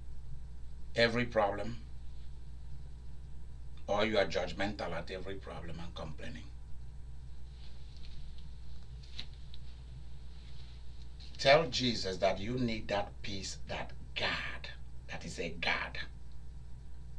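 A man speaks calmly to a microphone, pausing between phrases.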